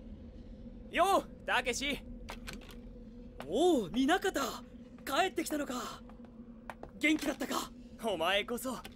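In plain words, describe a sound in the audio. A young man speaks with strong emotion, close by.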